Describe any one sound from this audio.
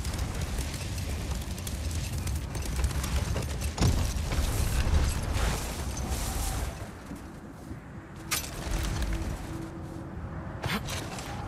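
Sled runners hiss and rumble over snow.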